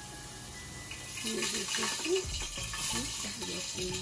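Pasta drops into a pot of water.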